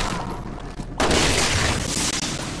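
Glass shatters loudly.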